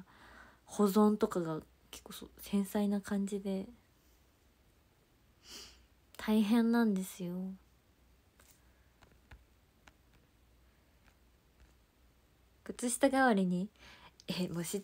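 A young woman talks casually and close by, in short bursts with pauses.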